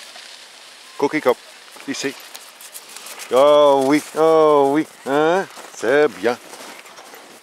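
A small dog barks and yelps close by.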